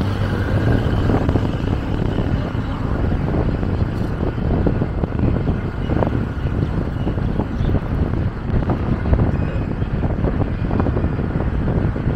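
A vehicle's engine rumbles steadily as it drives along a road.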